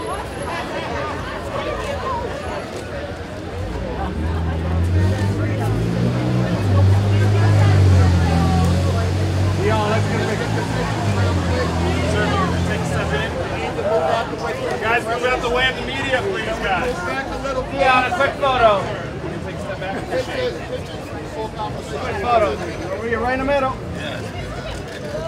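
A woman talks warmly with a man.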